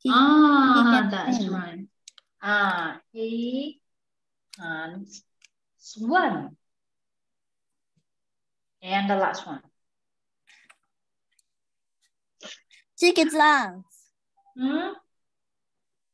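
A young woman speaks calmly and slowly through a microphone, in short phrases with pauses.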